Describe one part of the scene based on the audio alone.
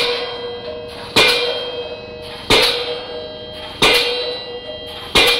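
A pile driver hammers a steel pile with loud, evenly spaced metallic clangs that ring out between blows.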